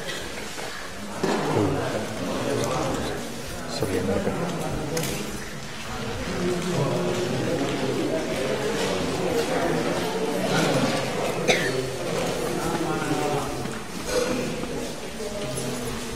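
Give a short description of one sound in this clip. Several men talk and murmur nearby in a busy crowd.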